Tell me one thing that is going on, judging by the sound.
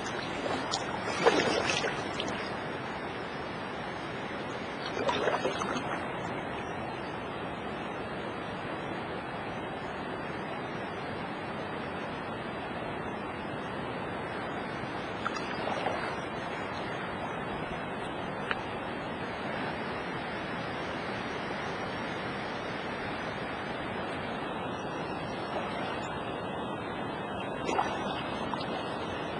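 Wind buffets the microphone in short gusts.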